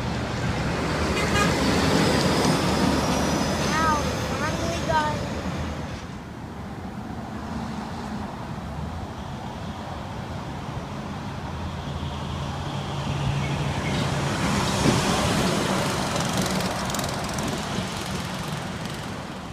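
A semi truck roars past on the road.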